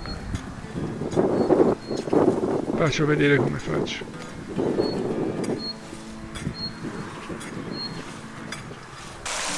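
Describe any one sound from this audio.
A hoe scrapes and chops through dry soil.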